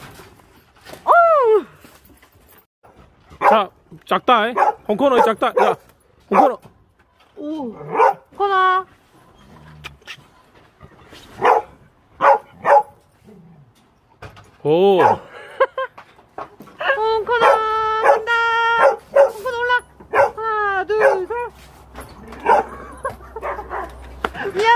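A dog howls and yowls close by in long, bending cries, outdoors.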